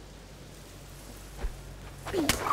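A crossbow fires with a sharp twang.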